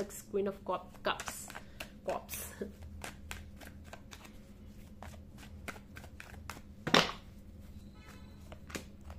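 Playing cards riffle and flick as a deck is shuffled by hand.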